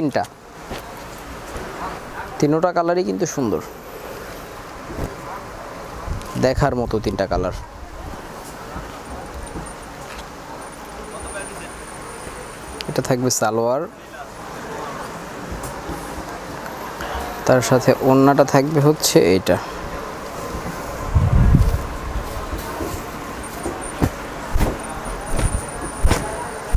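Cloth rustles as it is unfolded and handled.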